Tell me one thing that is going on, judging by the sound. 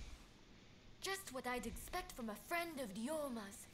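A young woman speaks calmly and teasingly.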